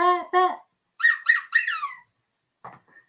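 A woman speaks in a high squeaky puppet voice.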